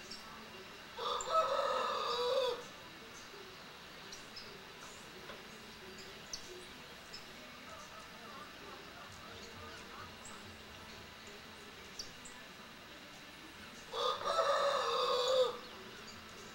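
A small bird sings a short, bright trilling song nearby.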